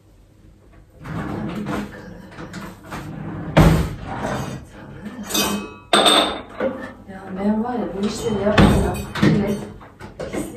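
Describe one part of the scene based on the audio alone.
Dishes and utensils clatter and knock close by.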